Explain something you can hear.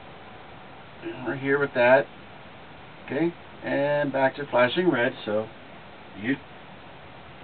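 A man talks with animation, close by.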